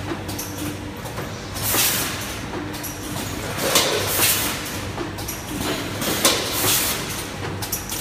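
A packing machine hums steadily nearby.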